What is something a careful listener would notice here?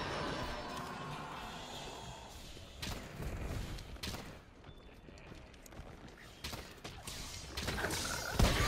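A blade swings and strikes with sharp slashing hits.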